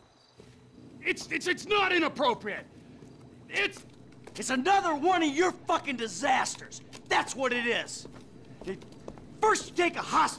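A middle-aged man shouts angrily.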